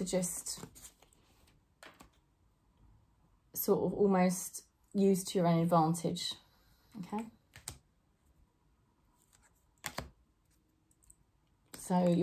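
A woman speaks with animation close to a microphone, pausing between phrases.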